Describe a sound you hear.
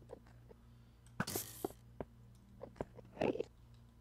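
An arrow whooshes from a bow.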